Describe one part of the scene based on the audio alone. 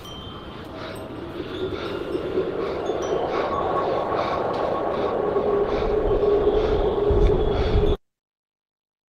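City traffic hums far below in the night.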